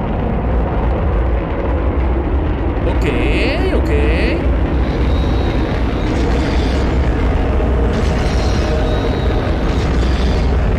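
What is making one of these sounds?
A rocket engine roars loudly and steadily.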